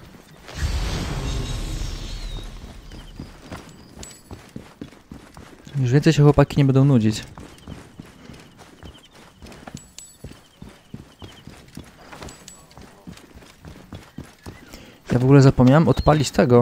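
Footsteps patter quickly on dirt and stone.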